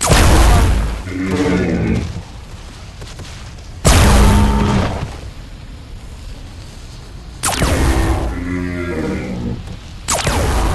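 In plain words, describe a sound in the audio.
A large creature roars and growls.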